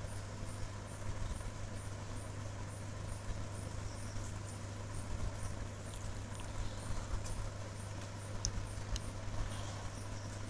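A kitten suckles with soft, wet clicking sounds.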